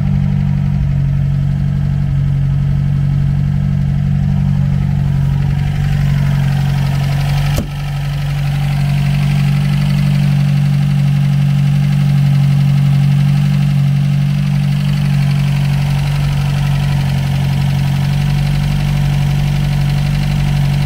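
A car engine idles with a steady, low rumble close by.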